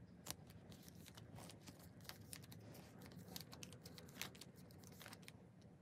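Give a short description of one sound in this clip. Plastic binder sleeves rustle and crinkle under hands.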